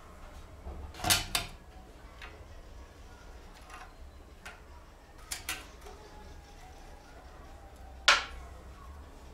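A metal box knocks and clatters as it is handled on a hard floor.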